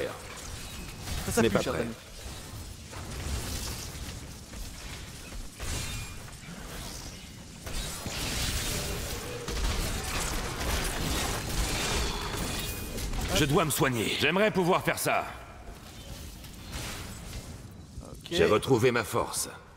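Magic bolts zap and crackle in a fast fight.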